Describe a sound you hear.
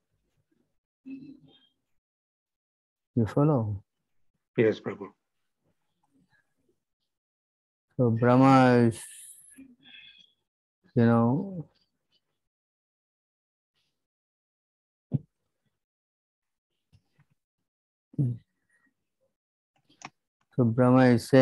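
An elderly man speaks slowly and calmly over an online call, with long pauses.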